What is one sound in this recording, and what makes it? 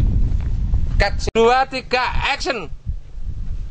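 A young woman speaks close by with animation.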